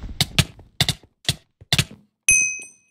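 Quick punching hits land one after another.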